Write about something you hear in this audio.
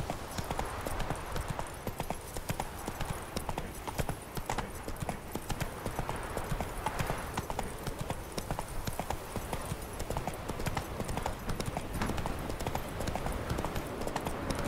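A horse gallops steadily, hooves thudding on the ground.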